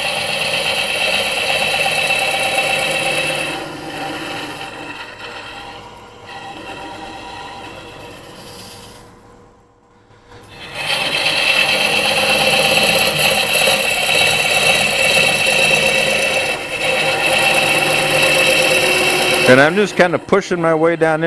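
A lathe whirs steadily.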